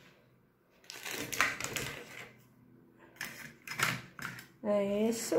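A wooden ruler clacks and scrapes as it is handled.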